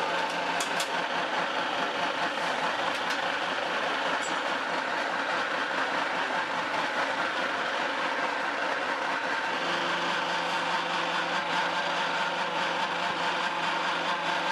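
A pellet machine's motor runs with a loud, steady drone.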